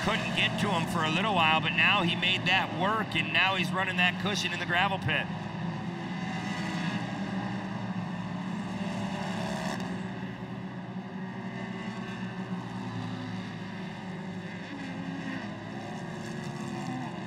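Off-road buggy engines roar and whine as the buggies race around a dirt track.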